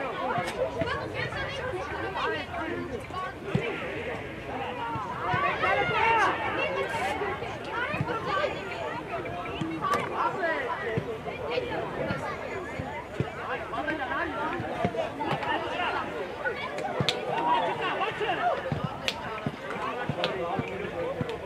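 Young children shout and call out across an open outdoor field.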